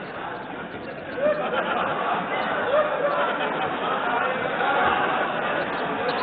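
A crowd of people laughs and cheers.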